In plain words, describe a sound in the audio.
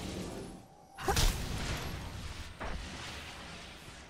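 A fiery blast bursts with a loud roar and then dies away.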